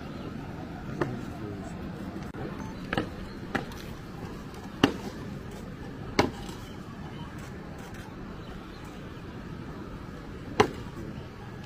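Boots stamp sharply on pavement outdoors.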